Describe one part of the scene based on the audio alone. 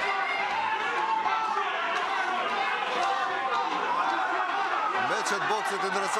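A crowd of spectators murmurs and shouts in an echoing hall.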